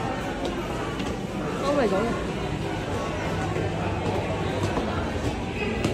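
Footsteps climb a staircase.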